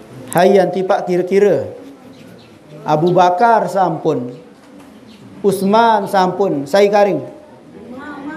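A man chants melodically into a microphone, in phrases with pauses.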